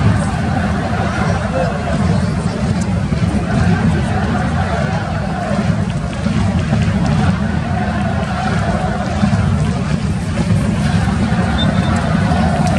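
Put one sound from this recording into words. A large stadium crowd roars and chants steadily in the distance.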